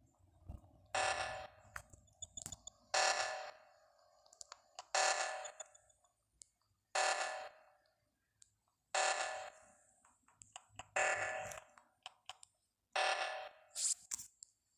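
A loud alarm blares in repeating pulses about every two seconds.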